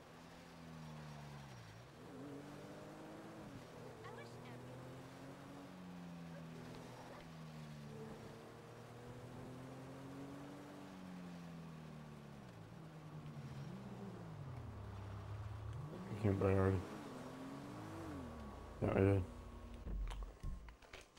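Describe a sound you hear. A car engine hums and revs up and down as the car drives along.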